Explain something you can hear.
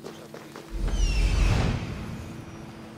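An eagle screeches.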